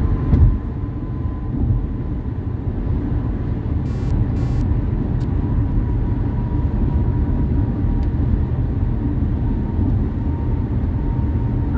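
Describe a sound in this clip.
A car drives steadily along a highway.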